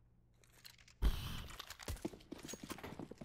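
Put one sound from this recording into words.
Footsteps scuff quickly on stone.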